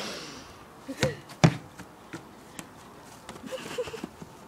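A football thumps as it is kicked on grass.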